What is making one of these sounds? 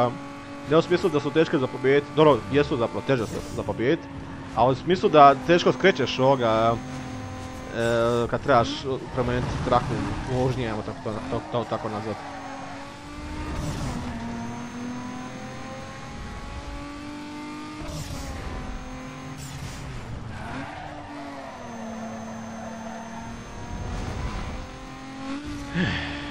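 A racing car engine drones and whines, rising and falling as the car shifts gears.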